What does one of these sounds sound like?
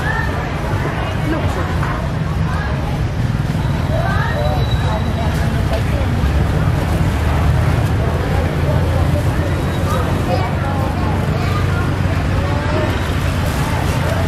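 Leafy vegetables rustle as hands handle them.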